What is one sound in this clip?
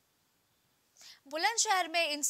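A young woman reads out briskly into a microphone.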